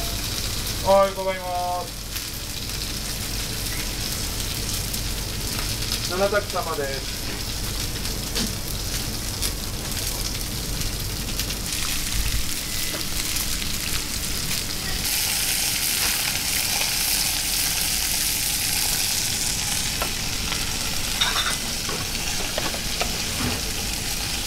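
Metal tongs clink against pans and pots.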